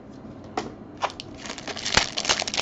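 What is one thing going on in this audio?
A foil card pack crinkles and tears as hands rip it open.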